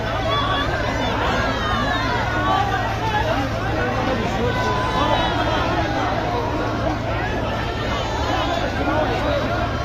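A crowd of men shout excitedly at a distance.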